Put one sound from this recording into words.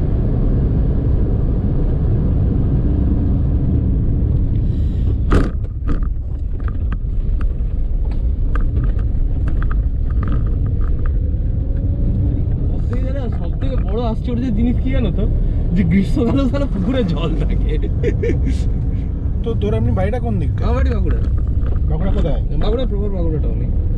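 Tyres rumble on a rough road.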